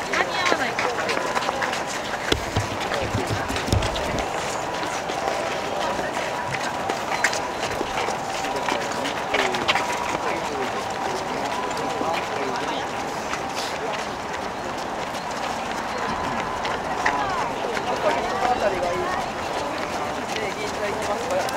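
Many running shoes patter on the road close by.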